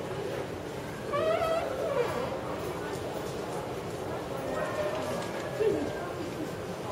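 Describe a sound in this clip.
A woman speaks cheerfully nearby.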